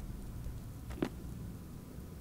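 A small object thuds onto a hard floor.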